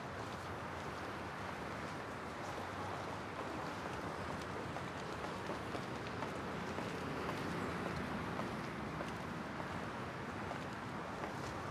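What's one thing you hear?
High heels click on pavement as a woman walks.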